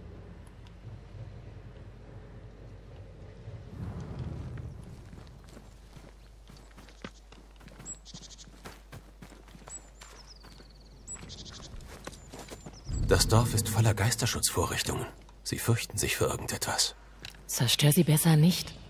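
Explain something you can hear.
Quick footsteps run over dirt and wooden planks.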